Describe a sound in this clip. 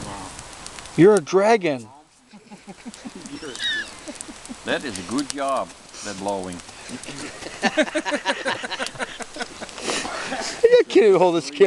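A middle-aged man talks calmly and clearly, close by, outdoors.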